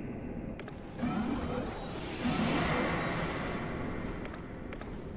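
A magic spell whooshes.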